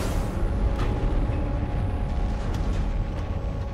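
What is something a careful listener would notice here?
Footsteps sound on a hard floor.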